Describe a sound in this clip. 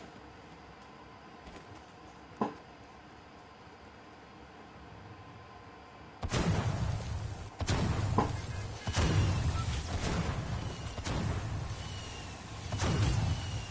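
A pickaxe swings and thuds repeatedly.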